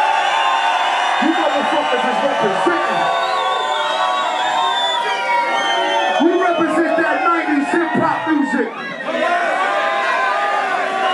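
Music plays loudly through loudspeakers.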